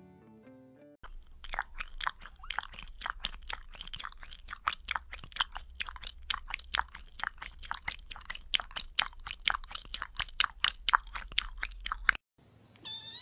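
Cats lick fur with quick, wet lapping sounds.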